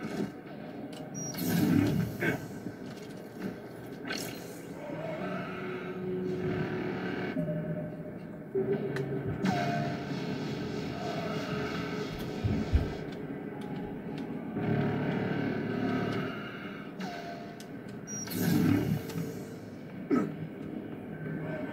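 Gunshots and blasts from a video game boom through loudspeakers.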